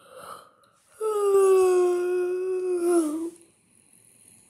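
A young boy lets out a long, loud wavering cry.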